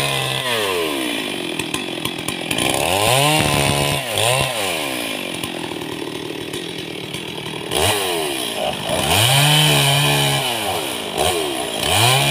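A chainsaw cuts through a log.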